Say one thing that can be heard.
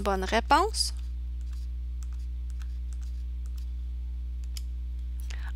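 Fingers press the keys of a small handheld keypad with faint clicks.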